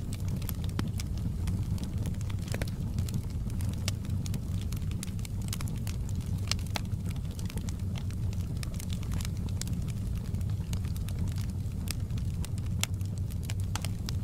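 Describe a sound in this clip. Flames roar with a steady low rumble.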